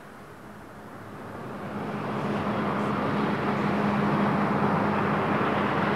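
Water sprays and rushes off a boat's hull.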